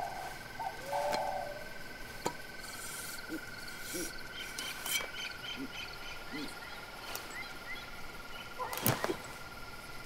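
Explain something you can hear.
A machete swishes through the air.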